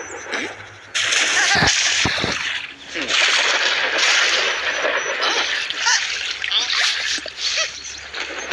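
Water splashes and bubbles in a bathtub.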